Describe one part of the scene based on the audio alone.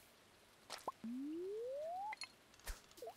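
A fishing reel winds in with a rising whir.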